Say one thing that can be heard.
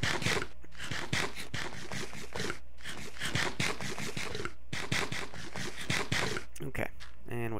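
Chunky crunching sounds of eating come in quick bursts.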